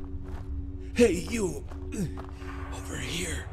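A man calls out urgently, nearby.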